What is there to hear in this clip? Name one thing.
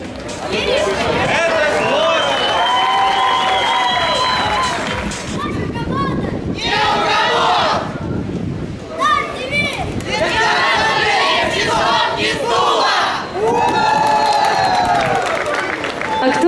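A group of young people chant in unison outdoors.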